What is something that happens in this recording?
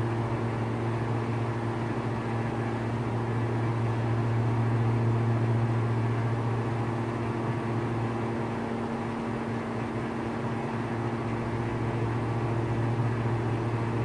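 A small plane's propeller engine drones steadily from inside the cockpit.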